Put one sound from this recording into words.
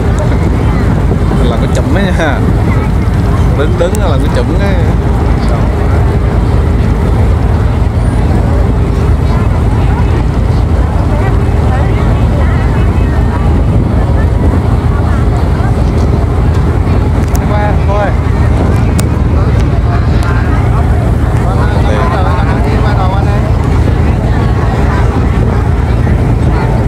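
A boat engine drones steadily and loudly close by.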